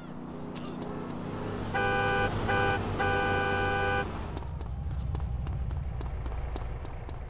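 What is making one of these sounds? A car engine hums nearby on a street.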